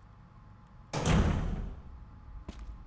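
A heavy metal door bangs shut with a booming echo.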